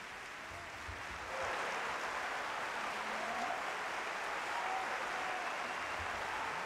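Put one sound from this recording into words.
A large audience applauds in an echoing concert hall.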